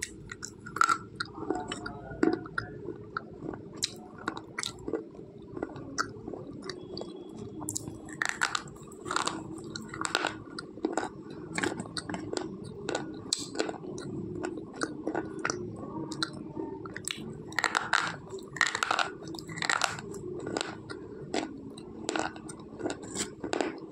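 A woman bites and crunches something hard, close up.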